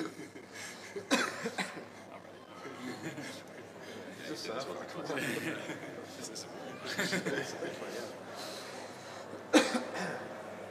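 Men laugh heartily.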